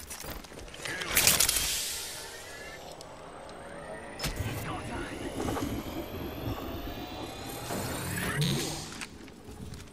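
An electronic healing device whirs and chimes.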